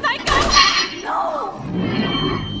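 A young woman shouts in alarm.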